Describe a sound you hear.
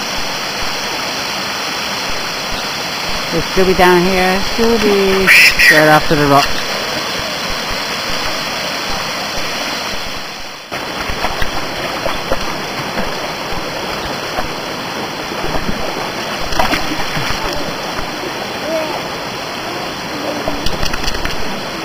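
Water rushes and splashes steadily over rocks nearby.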